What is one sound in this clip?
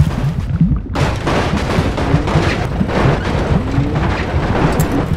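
Heavy trucks crash and crunch against a metal bridge.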